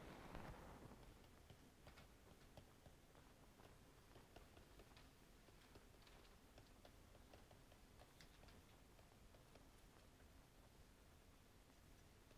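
A pen scratches softly on a writing pad.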